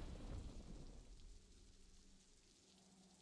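A triumphant game chime rings out and fades away.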